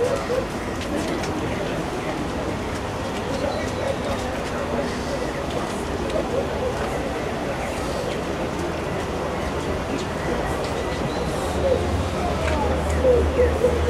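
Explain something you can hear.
A crowd of men and women murmurs quietly nearby.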